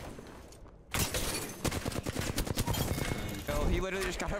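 An automatic rifle fires in a rapid burst.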